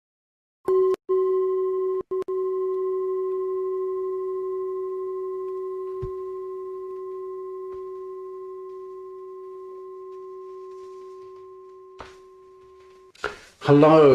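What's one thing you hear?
A singing bowl rings with a long, steady tone that slowly fades.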